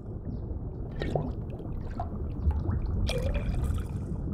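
Small stones plink and splash into a glass bowl of water.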